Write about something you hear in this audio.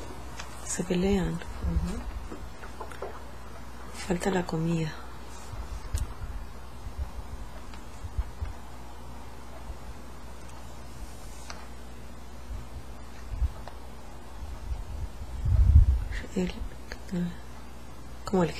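A young woman speaks slowly and quietly in short phrases, close to the microphone.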